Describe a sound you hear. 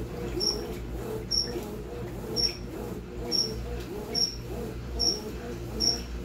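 A washing machine agitates laundry in water with a steady rhythmic swishing.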